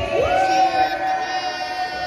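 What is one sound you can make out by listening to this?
A young woman shouts excitedly.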